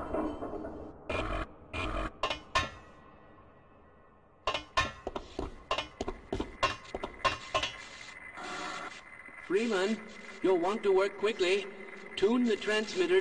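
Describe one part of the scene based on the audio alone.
Footsteps clank on a metal grate floor.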